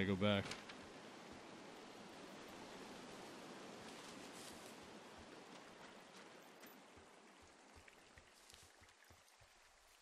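A stream of water rushes and gurgles nearby.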